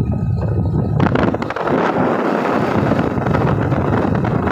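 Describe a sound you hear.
A car rushes past close by with a loud whoosh.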